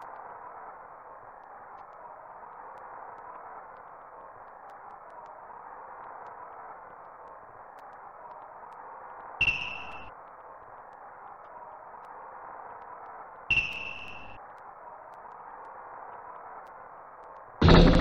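A crowd roars in a 16-bit game console basketball game.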